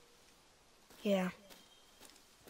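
A young boy calls out briefly.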